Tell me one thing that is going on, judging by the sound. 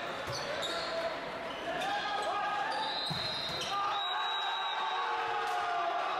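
A volleyball is hit with a sharp slap.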